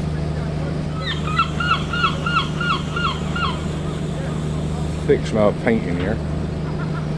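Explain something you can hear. Gulls cry out in a series of sharp calls.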